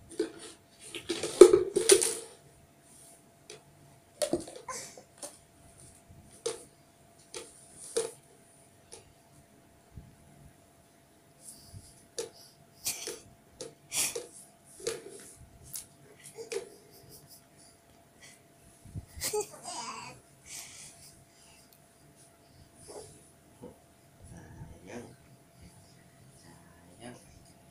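A baby babbles and squeals in short bursts close by.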